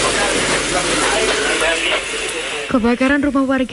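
Several men talk at once nearby, in a noisy crowd.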